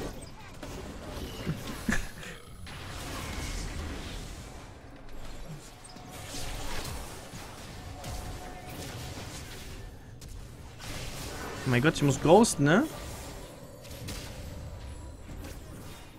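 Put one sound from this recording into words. Video game battle sound effects clash and whoosh.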